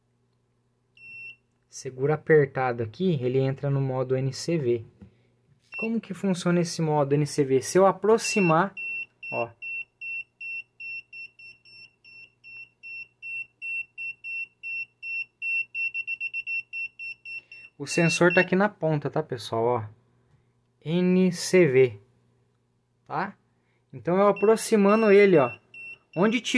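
An electronic meter beeps in short repeated pulses that speed up.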